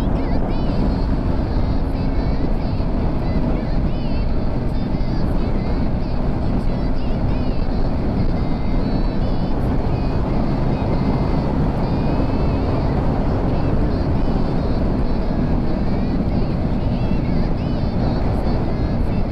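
Wind roars loudly against a microphone on a moving motorcycle.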